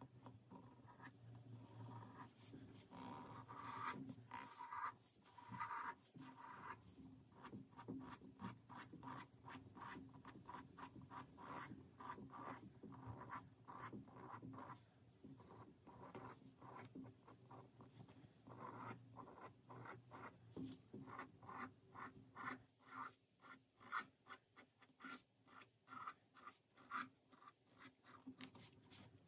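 A pen tip scratches quickly across paper in short strokes.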